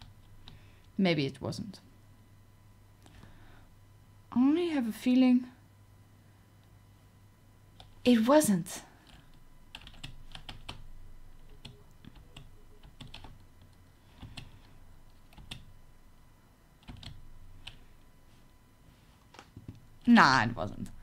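A young woman speaks with animation into a close microphone, in short bursts.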